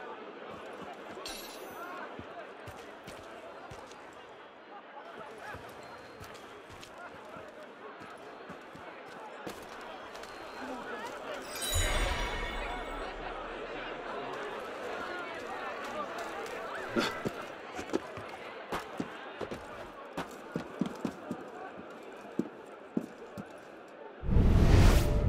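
A crowd murmurs below.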